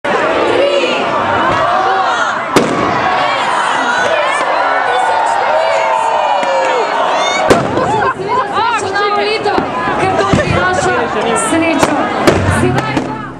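A crowd of men and women chatters loudly all around outdoors.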